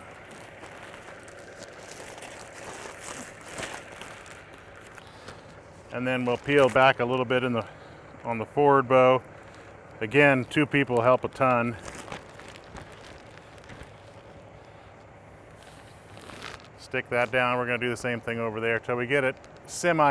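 Plastic wrap rustles and crinkles as a man handles it.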